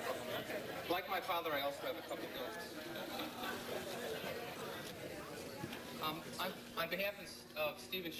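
A middle-aged man speaks through a microphone over loudspeakers.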